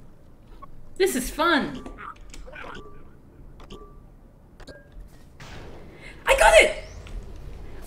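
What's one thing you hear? A young woman laughs and exclaims with animation close to a microphone.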